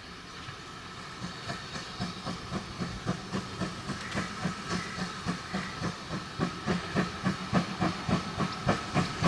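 A steam locomotive chugs closer, its puffs growing louder and faster.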